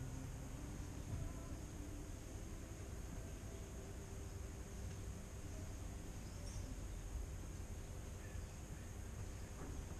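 An electric guitar plays through an amplifier.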